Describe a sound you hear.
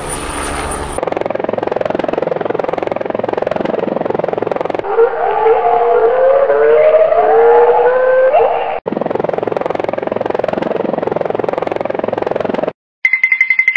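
A helicopter's rotor chops steadily.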